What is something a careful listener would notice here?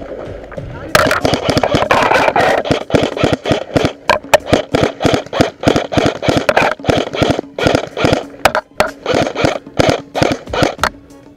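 An airsoft gun fires in rapid bursts close by.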